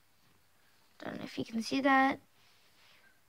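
A young girl speaks briefly and close by.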